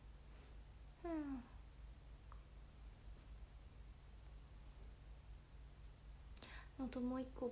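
A young woman speaks briefly and expressively close to a microphone.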